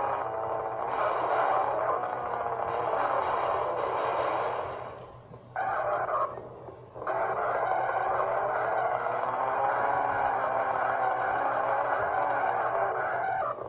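Car tyres screech while drifting, heard through small speakers.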